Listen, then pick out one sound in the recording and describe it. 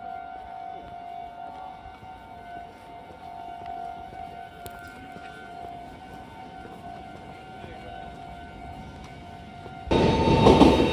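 A stopped train hums with a steady tone nearby.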